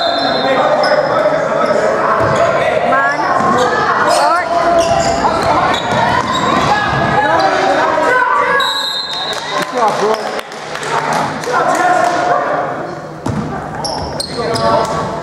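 Spectators talk and call out in an echoing gym.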